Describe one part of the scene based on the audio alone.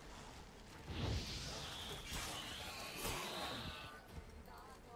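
A burst of sparks crackles and hisses.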